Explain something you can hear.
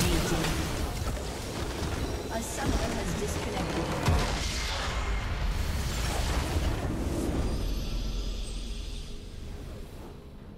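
Video game explosion effects crash and roar.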